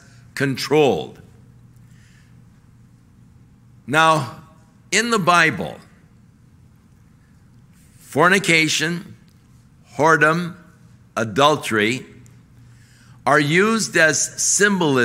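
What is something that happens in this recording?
An older man speaks forcefully into a microphone in short bursts with pauses.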